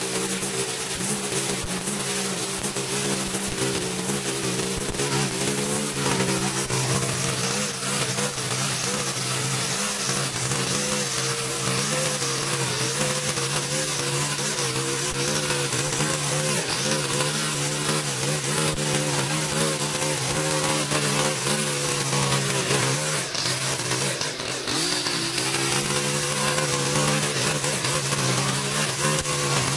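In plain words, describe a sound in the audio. A petrol string trimmer engine whines steadily close by.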